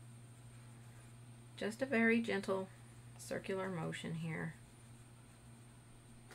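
A paintbrush brushes softly on paper.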